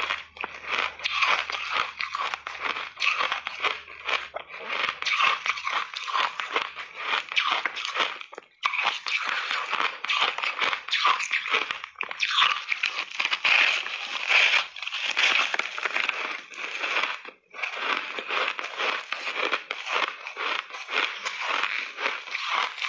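A woman crunches and chews ice close to the microphone.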